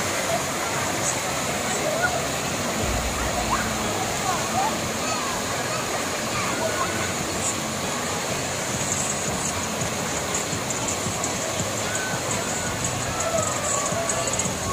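Waves wash and churn in a wide pool.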